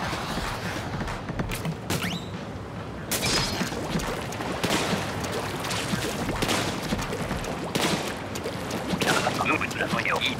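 A video game plays splashy bursts of ink spraying.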